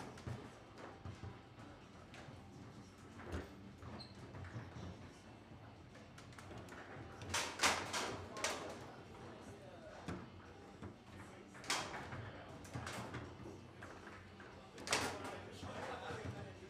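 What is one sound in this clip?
A foosball ball clacks sharply against rods and the table's walls.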